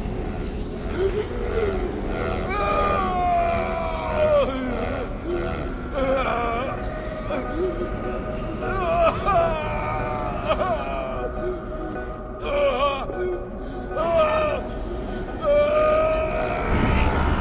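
A man speaks slowly and with drama, with long drawn-out words.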